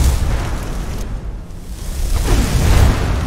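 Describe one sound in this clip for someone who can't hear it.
A magic spell hums and crackles softly.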